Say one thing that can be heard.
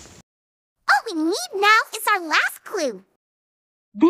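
A young woman speaks cheerfully and with animation.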